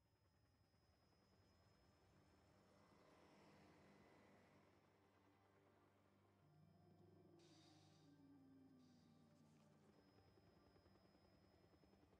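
Helicopter rotors thump overhead.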